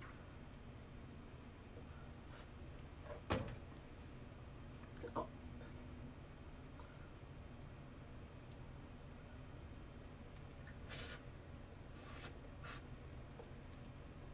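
Small utensils clink and tap together.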